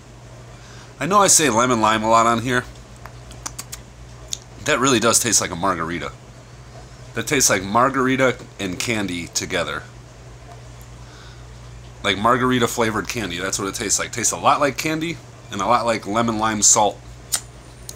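A man talks close up, in short bursts with pauses.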